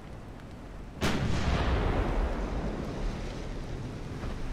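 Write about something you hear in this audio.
A large shell explosion roars and slowly fades.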